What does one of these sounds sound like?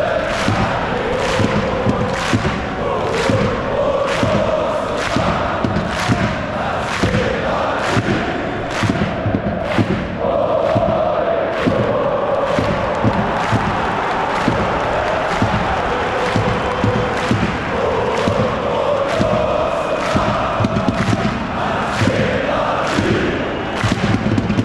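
A large crowd chants loudly in unison in a big echoing stadium.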